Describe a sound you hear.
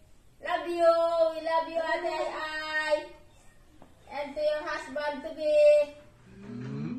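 A family of adults and a child call out a greeting together through a phone microphone.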